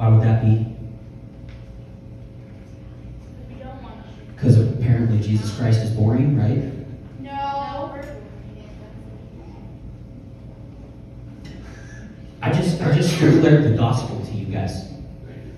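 A man speaks with animation into a microphone, heard through loudspeakers in bursts with pauses.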